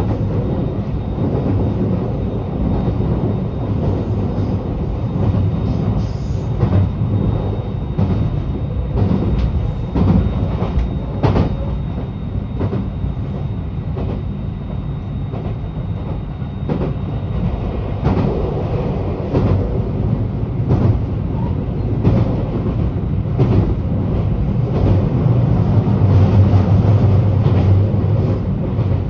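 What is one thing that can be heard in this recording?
The car bumps and rattles over uneven road.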